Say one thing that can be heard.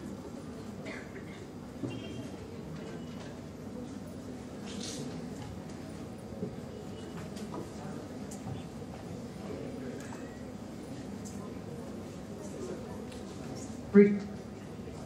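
A young man speaks into a microphone in a large echoing hall.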